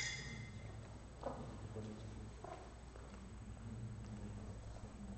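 Metal funnels rasp softly as sand is trickled out.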